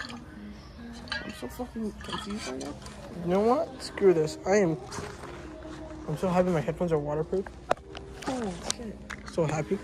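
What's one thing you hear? A teenage boy talks casually, close by.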